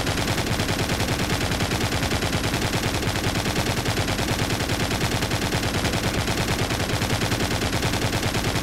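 A machine gun fires in rapid continuous bursts.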